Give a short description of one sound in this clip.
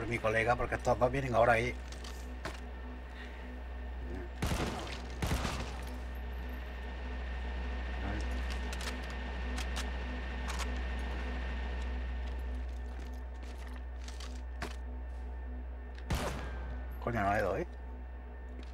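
A man speaks into a headset microphone with animation, close by.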